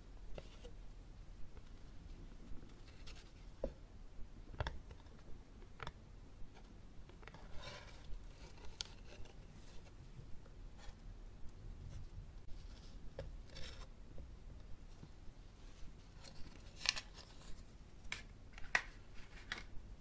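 Fingers rustle and tap a stiff paper card close up.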